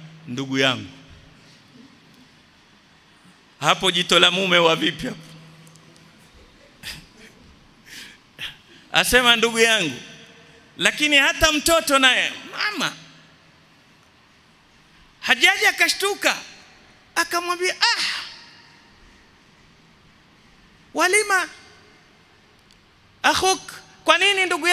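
A middle-aged man preaches with animation into a microphone, in short bursts with pauses, in an echoing hall.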